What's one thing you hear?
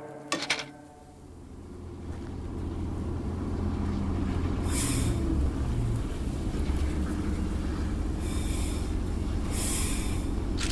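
A locomotive engine rumbles low and steadily.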